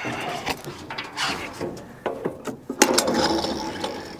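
A metal lid clanks open.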